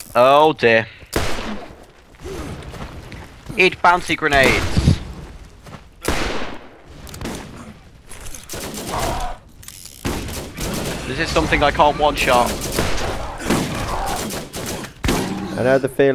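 Guns fire in bursts of sharp shots.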